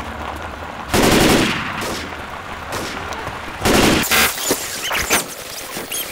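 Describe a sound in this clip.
A rifle fires loud bursts of gunshots.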